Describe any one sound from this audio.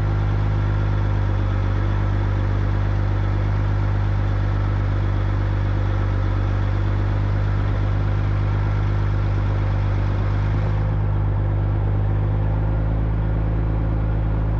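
Tyres crunch on loose dirt.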